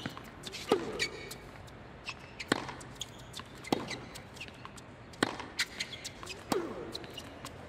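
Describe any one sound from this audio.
A tennis ball is struck back and forth with rackets, each hit a sharp pop.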